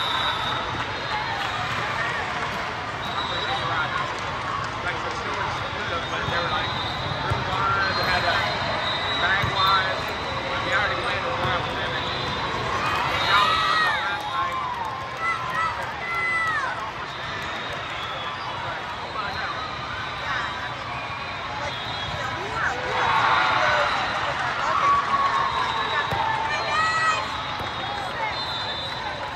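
A large echoing hall is filled with the murmur and calls of many people.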